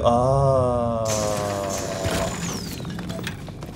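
A rock bursts apart with a crackling blast.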